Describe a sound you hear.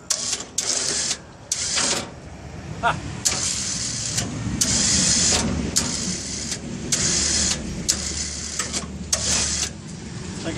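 An electric winch whirs in short bursts.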